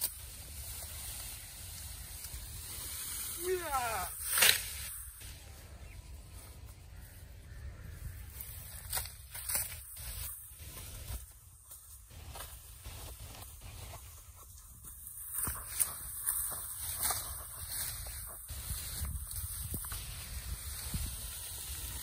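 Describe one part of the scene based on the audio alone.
Tall grass rustles as armfuls are gathered and carried.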